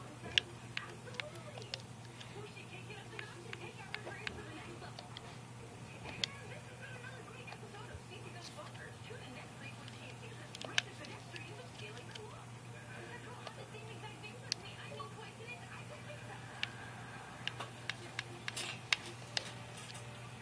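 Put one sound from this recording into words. Short menu clicks sound from a television's speaker now and then.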